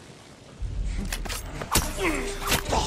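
A sword slashes and clangs in a sudden strike.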